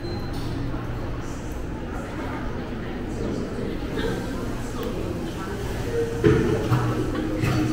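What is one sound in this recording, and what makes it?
A crowd murmurs quietly in the distance, in an echoing room.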